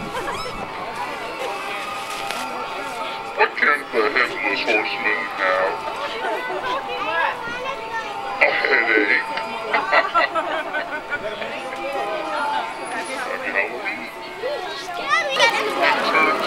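An animatronic clown talks and laughs in a distorted voice through a loudspeaker.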